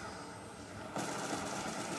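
Rapid gunfire rattles from a video game through a television speaker.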